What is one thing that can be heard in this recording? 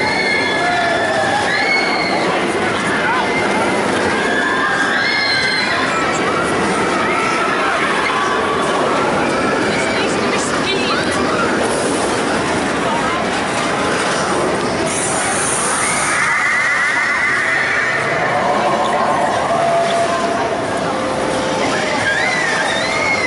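A roller coaster rumbles and roars along its track.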